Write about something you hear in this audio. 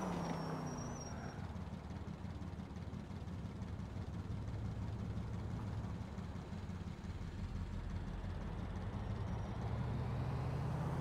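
A car engine idles low while stopped.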